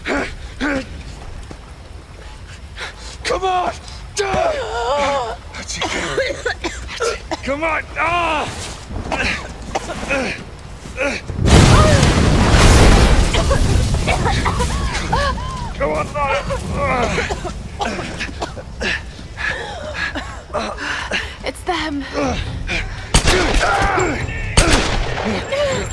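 An older man speaks urgently and close by.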